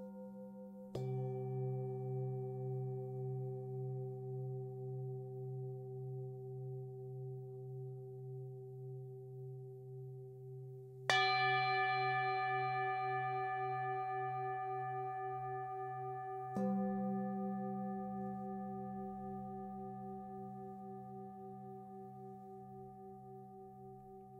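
Metal singing bowls are struck with a mallet and ring out with long, slowly fading tones.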